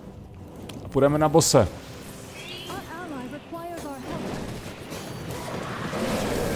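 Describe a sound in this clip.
Magic spells burst and crackle during a fight.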